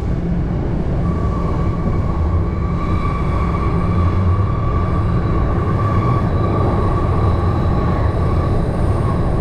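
Train wheels squeal steadily on the rails.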